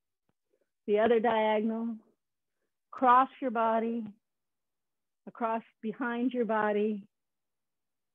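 A woman calls out in long, drawn-out phrases over an online call.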